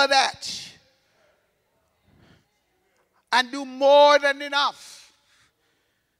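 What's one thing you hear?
A man preaches with passion through a microphone and loudspeakers in a large echoing hall.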